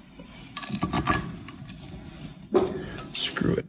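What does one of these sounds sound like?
Metal parts clink and tap together.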